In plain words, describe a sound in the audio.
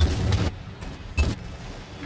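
Bullets strike metal with sharp pings.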